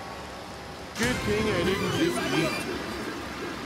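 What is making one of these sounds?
A bright game chime sounds as a new lap begins.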